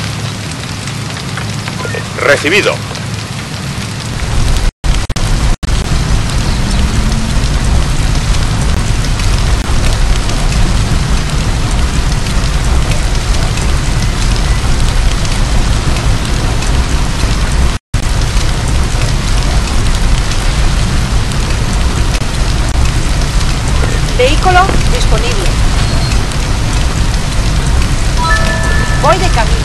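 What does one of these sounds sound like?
Water sprays steadily from a fire hose.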